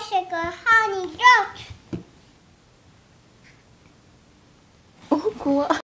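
A young girl talks close by in a high, lively voice.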